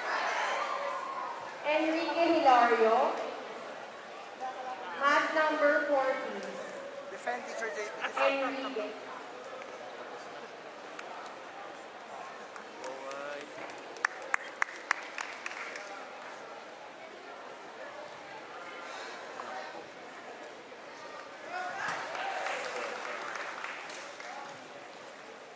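Spectators shout and cheer in a large echoing hall.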